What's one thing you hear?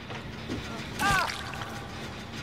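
A heavy weapon strikes with a sharp thud.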